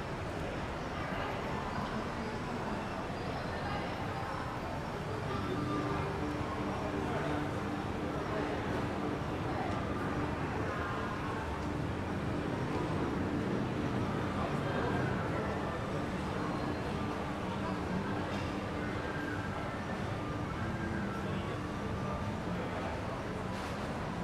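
A crowd of shoppers murmurs and chatters in a large echoing hall.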